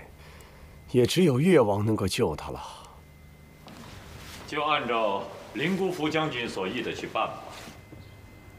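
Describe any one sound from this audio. A second man answers in a low, troubled voice.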